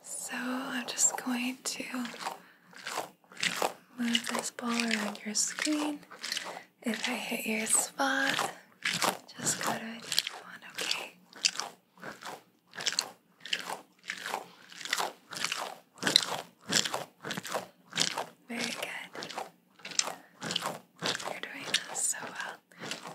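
A squishy bead-filled ball crackles and squelches as hands squeeze it close to the microphone.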